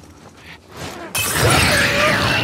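A glass bottle shatters.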